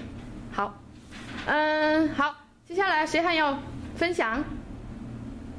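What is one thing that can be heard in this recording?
A teenage girl speaks loudly and expressively close by.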